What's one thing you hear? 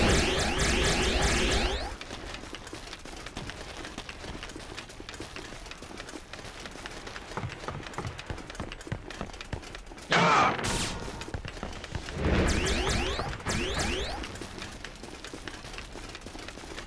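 Footsteps patter quickly as a warrior runs.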